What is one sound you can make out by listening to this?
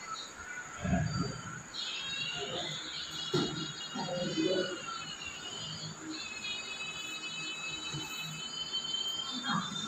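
A middle-aged woman speaks calmly through a loudspeaker.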